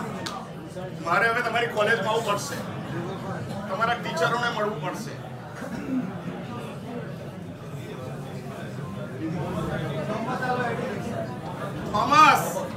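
A large crowd of men and women chant together in unison.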